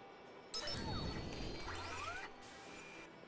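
A digital whooshing sweep rises and fades quickly.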